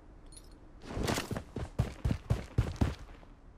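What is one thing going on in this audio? Footsteps thud quickly on a hard surface.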